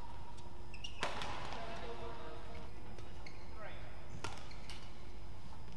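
A racket smacks a shuttlecock back and forth in a large echoing hall.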